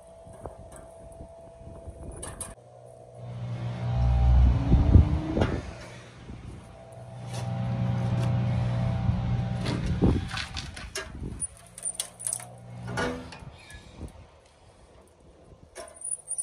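A metal ratchet lever clanks and clicks as it is cranked.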